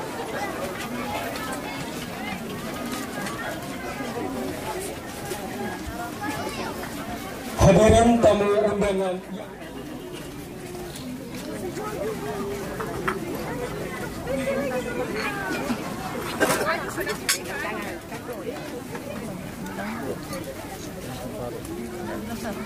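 A crowd of people talks and murmurs nearby outdoors.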